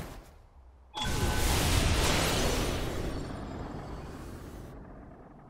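A burst of dark magic whooshes and roars.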